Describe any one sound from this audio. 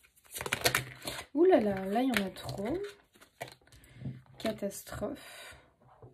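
A card is laid down on a wooden table with a soft tap.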